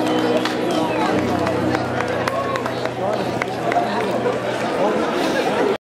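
A band plays guitars and a fiddle through loudspeakers.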